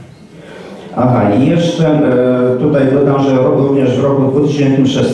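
A man speaks loudly and steadily through a microphone.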